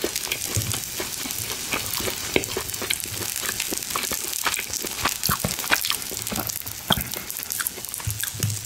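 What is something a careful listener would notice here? A man chews food wetly close to the microphone.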